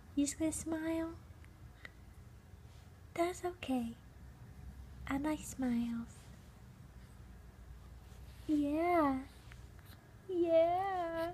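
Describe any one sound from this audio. A baby coos and babbles softly up close.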